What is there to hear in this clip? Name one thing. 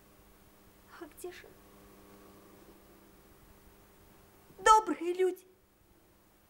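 A young woman exclaims with animation, close by.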